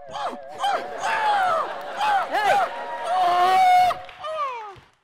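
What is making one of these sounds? A crowd laughs and cheers.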